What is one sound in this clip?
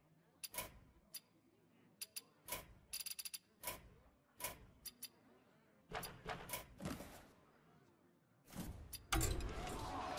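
Game menu buttons click sharply, one after another.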